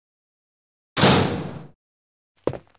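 A heavy metal door creaks and swings open.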